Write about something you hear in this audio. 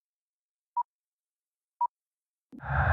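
A short countdown beep sounds twice.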